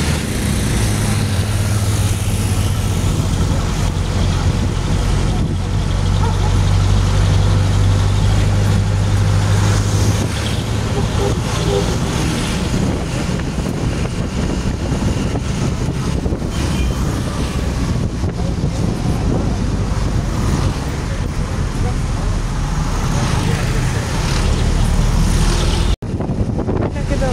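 Wind rushes past an open window.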